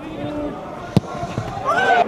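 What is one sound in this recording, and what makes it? A football is struck hard with a boot.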